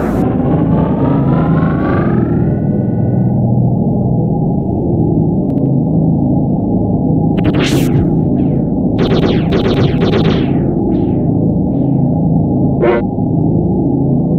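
Upbeat video game music plays steadily.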